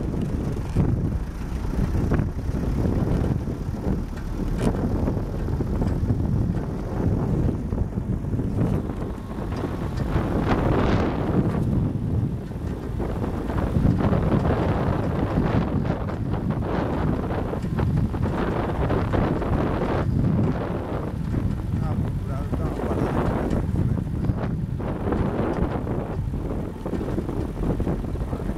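A vehicle's engine rumbles steadily as it drives.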